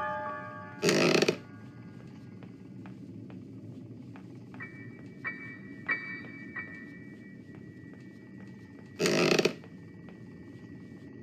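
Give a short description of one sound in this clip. Footsteps thud steadily across wooden floorboards.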